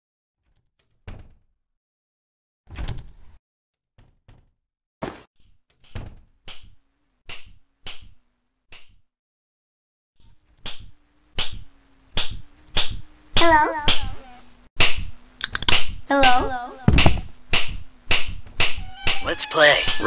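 Footsteps thump quickly across a hard floor.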